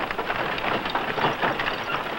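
Cart wheels creak and rumble past.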